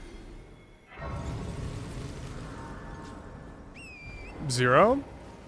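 A shimmering magical chime swells up and slowly fades.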